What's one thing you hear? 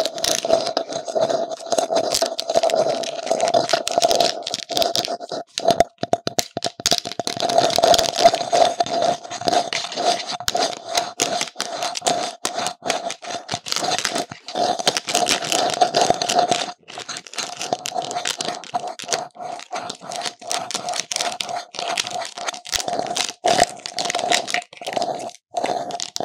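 A stiff plastic mask crackles and knocks as it is handled close by.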